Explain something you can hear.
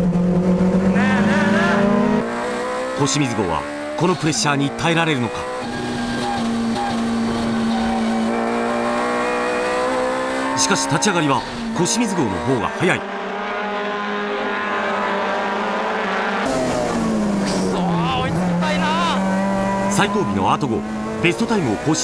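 A racing car engine roars loudly and revs up and down.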